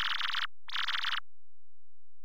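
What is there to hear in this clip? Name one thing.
Rapid electronic blips chatter as dialogue text types out.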